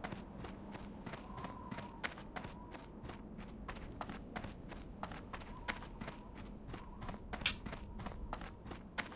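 Footsteps patter quickly and evenly on dry ground.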